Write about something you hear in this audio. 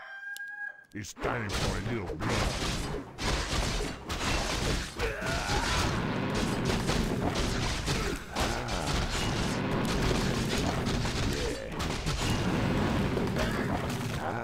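Weapons clash and spells crackle in a fierce game battle.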